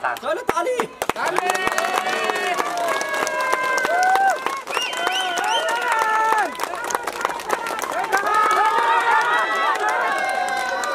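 A crowd of men and women shouts slogans in unison outdoors.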